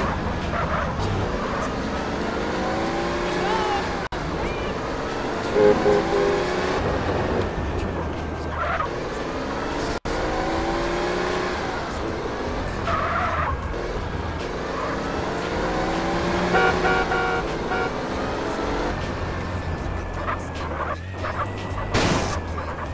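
A car engine revs up and shifts gears repeatedly as a car speeds along.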